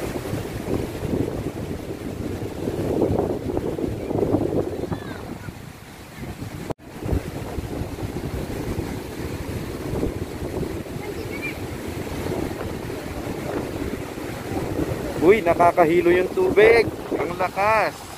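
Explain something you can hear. Fast water rushes and churns below, steady throughout.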